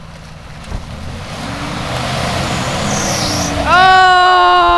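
Tyres spin and churn through wet mud.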